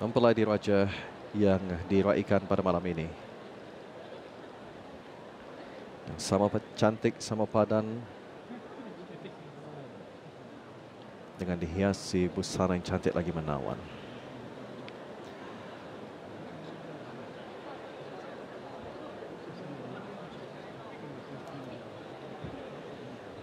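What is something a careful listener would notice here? A crowd of guests murmurs softly in a large hall.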